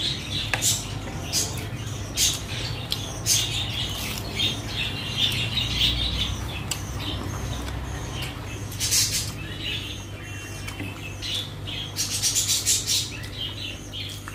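A woman chews food with wet smacking sounds close up.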